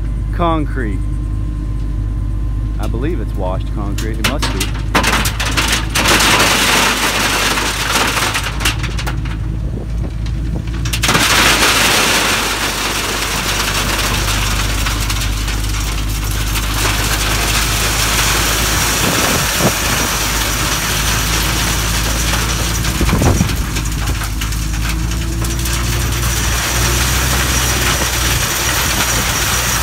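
A heavy diesel engine rumbles steadily close by.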